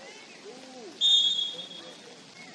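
A referee's whistle blows once, short and sharp.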